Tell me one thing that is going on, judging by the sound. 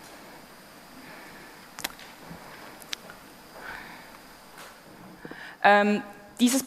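A man speaks through a microphone in a large, echoing hall.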